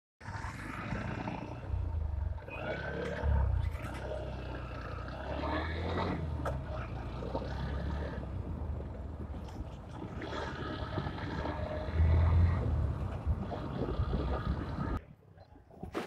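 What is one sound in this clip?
Wind rushes past a microphone.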